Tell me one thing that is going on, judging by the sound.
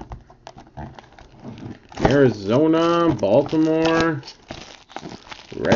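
Plastic wrap crinkles and rustles as hands tear it open.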